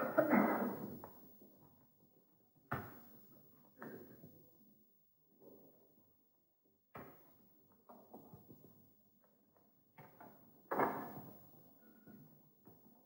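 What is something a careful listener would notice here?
A wooden staff strikes the floor with sharp knocks that echo through a large hall.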